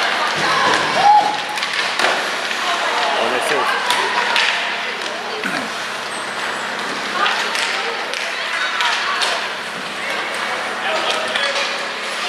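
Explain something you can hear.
Ice hockey skates scrape and carve across ice in an echoing arena.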